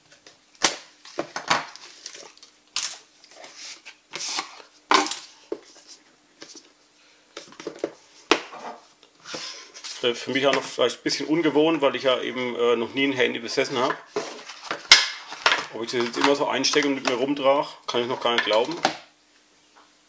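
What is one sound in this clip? Cardboard boxes tap and knock against a wooden table.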